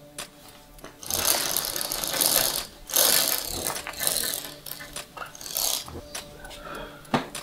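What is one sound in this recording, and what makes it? Window blinds rattle as a cord is pulled.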